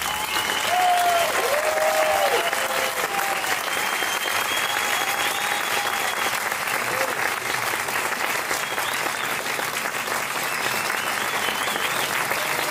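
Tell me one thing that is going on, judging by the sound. People in the audience cheer and whistle.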